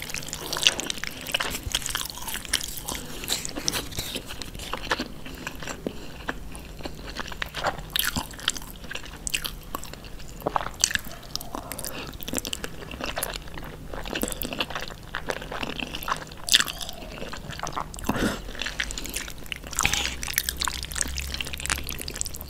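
Wooden utensils stir and lift sticky noodles with wet squelching and clicking sounds, close to the microphone.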